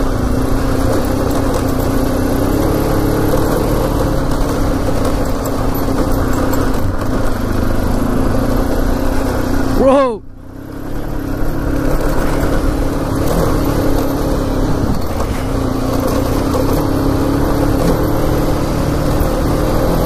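A motorcycle engine drones steadily, briefly dropping away halfway through.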